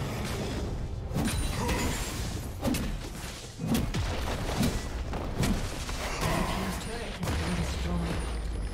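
Magic spells burst and whoosh in quick succession during a fight.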